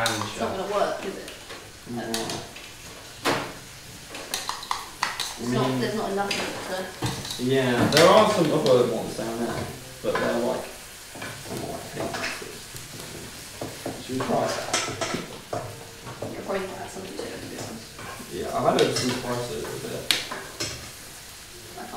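A utensil clicks and scrapes against a bowl.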